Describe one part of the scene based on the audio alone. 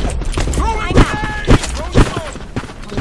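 A sniper rifle fires a loud single shot.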